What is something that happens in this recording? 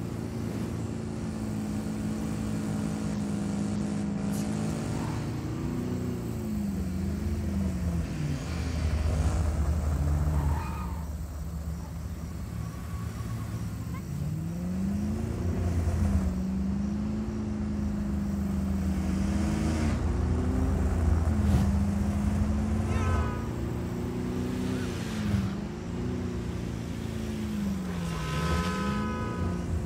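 A car engine hums and revs up and down as it drives fast.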